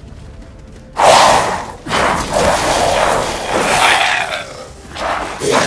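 A blade slashes and strikes with heavy impacts.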